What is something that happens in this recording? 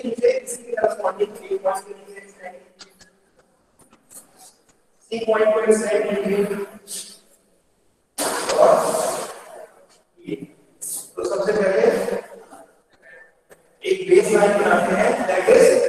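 A young man explains something steadily, in bursts with pauses.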